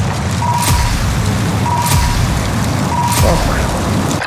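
An electronic tone chimes as a score tallies up.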